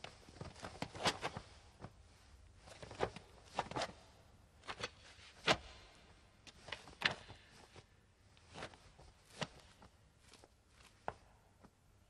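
A man grunts and gasps with effort nearby.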